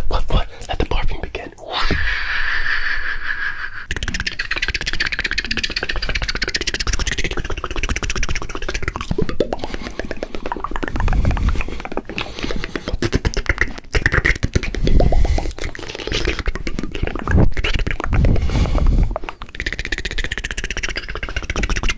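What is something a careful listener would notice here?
A man whispers very close to a microphone.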